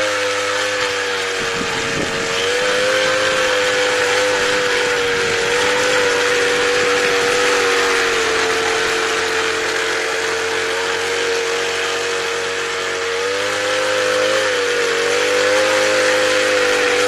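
A small engine on a garden tiller whines steadily, its pitch rising and dipping slightly.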